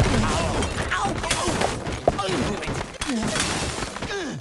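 Wooden blocks crash and tumble down.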